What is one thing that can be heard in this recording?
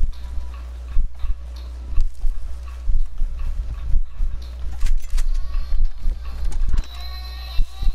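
Footsteps run through grass.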